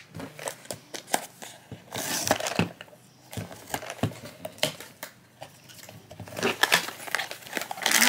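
Hands turn and tap a small cardboard box.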